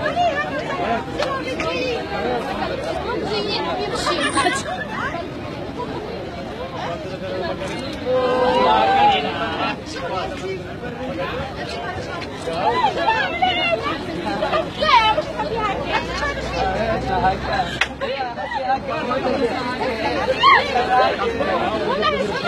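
A crowd of men and women talks and shouts all around, outdoors.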